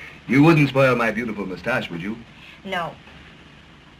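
A man speaks playfully and close by.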